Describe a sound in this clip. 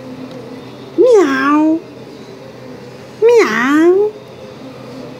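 A baby squeals loudly nearby, twice in short high bursts.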